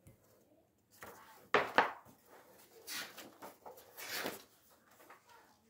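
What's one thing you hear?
Pages of a paper book rustle and flip.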